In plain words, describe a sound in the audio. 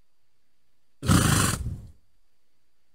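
A horse snorts loudly close by.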